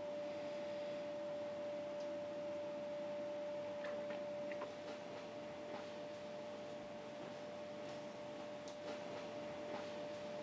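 A machine hums with a steady high tone.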